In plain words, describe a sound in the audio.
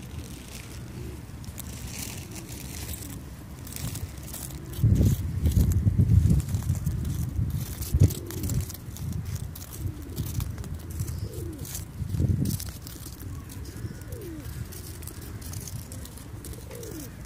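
Pigeons coo softly nearby.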